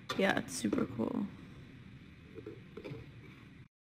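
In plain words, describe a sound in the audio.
A cardboard box lid closes with a soft thud.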